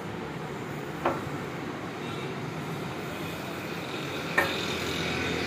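A plastic handle knocks lightly against metal as an iron is handled.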